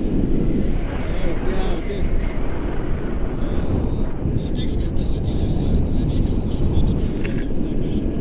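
A man laughs and talks close by.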